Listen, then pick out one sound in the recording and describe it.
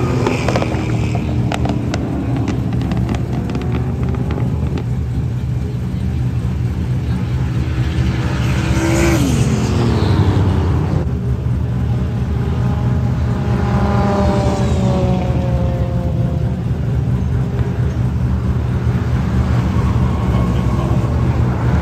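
Car engines roar and rev loudly as cars race around a track.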